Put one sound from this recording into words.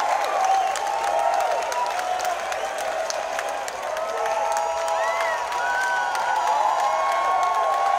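Fans in a crowd whistle shrilly.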